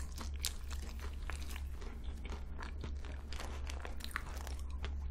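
A young woman chews food close to a microphone with wet, crunchy mouth sounds.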